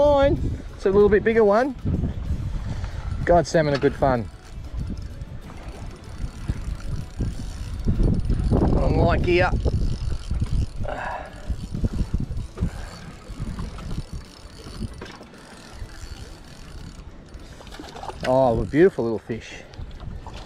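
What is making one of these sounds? A fishing reel whirs as its line is wound in.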